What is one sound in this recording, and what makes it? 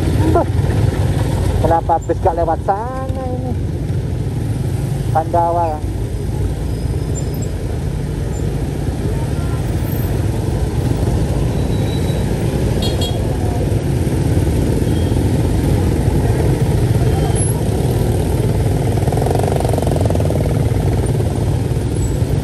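Many motorbike engines rumble and idle close by in busy traffic.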